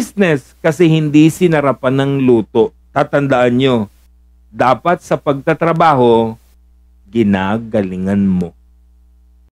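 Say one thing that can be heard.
A man speaks emphatically into a close microphone.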